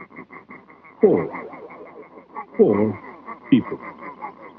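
A springy boing sounds as a cartoon clown's head bobs on a spring.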